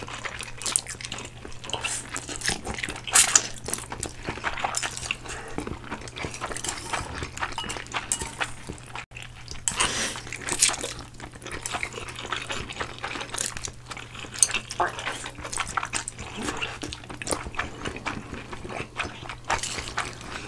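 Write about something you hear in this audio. People slurp noodles loudly and close up.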